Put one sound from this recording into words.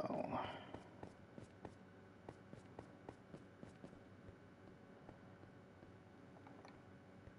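Footsteps tread slowly on stone.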